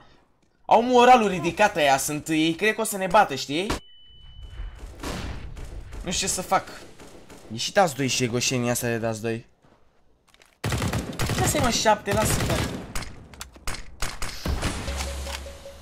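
Gunshots crack from a rifle.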